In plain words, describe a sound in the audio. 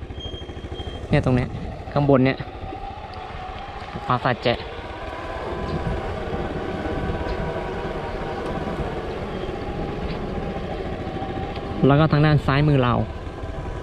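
A small engine hums steadily.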